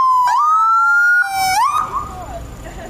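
A police siren whoops briefly up close.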